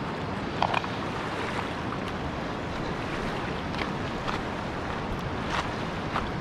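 A river rushes and ripples over stones outdoors.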